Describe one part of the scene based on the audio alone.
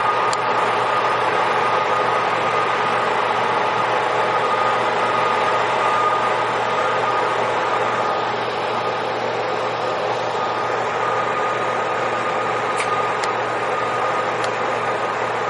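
A rail maintenance machine's engine drones steadily as it rolls along the track.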